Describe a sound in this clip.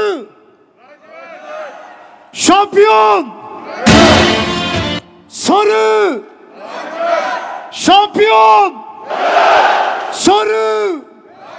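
A crowd of fans chants and cheers.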